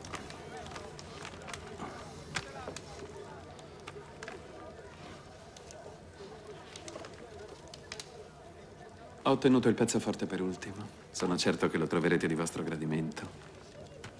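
Sheets of paper rustle.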